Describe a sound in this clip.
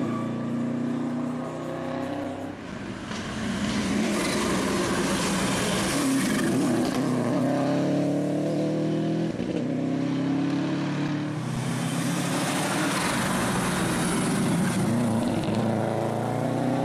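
A rally car engine roars loudly, revving up and down as it races past.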